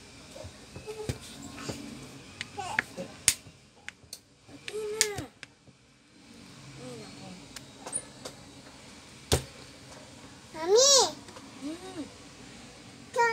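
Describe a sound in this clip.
A plastic pry tool clicks and taps against the edge of a phone.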